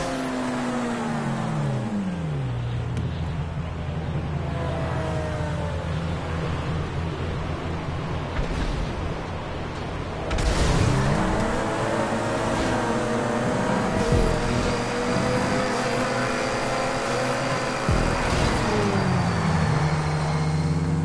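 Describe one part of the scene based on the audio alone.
A powerful car engine roars and revs, its pitch rising and falling.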